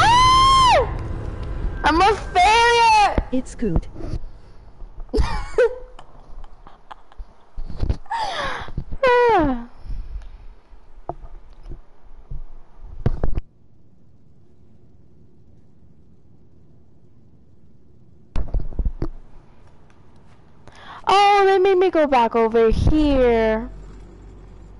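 A young woman screams and shouts with excitement into a headset microphone.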